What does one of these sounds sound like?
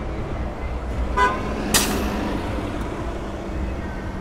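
A bus engine rumbles close by.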